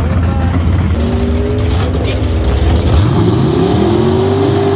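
A muscle car engine rumbles deeply and revs up.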